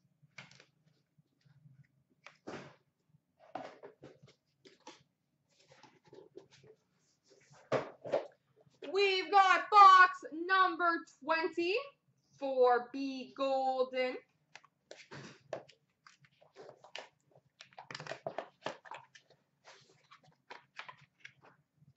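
Cardboard boxes knock and scrape as they are handled.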